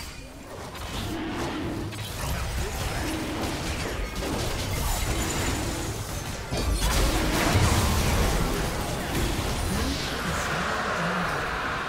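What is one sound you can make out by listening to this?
A dragon roars and snarls.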